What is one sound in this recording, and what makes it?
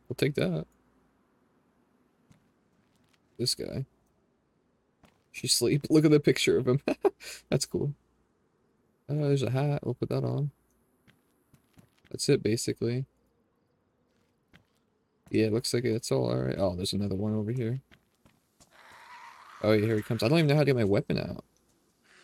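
A young man talks into a close microphone with animation, in bursts.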